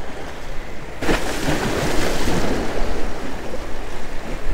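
Waves splash against rocks.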